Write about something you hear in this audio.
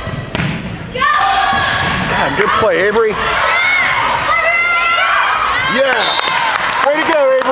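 Teenage girls shout and call out to each other in an echoing gym.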